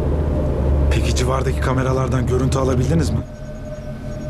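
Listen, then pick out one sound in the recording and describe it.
A man speaks tensely into a phone inside a car.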